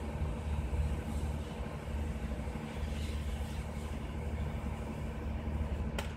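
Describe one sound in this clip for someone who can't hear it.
A cutting torch hisses against steel.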